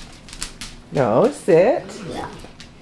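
A puppy gives a few high, wavering whines close by.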